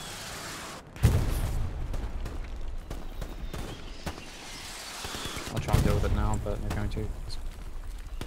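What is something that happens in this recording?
Artillery shells explode with deep, rumbling booms.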